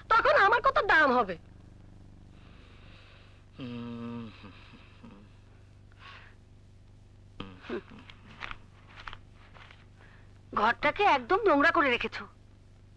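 A woman speaks with emotion nearby.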